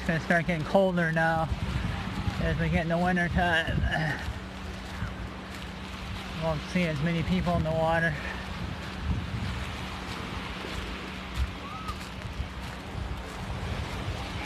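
Small waves lap on a sandy shore.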